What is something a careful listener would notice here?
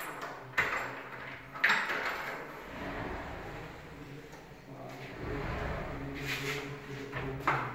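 A glass door slides open and shut on its track.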